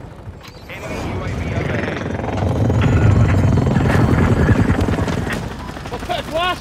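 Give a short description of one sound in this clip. A helicopter engine and rotor roar loudly.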